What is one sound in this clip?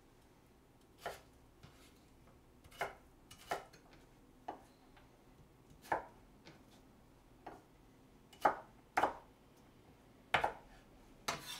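A knife chops on a cutting board with sharp taps.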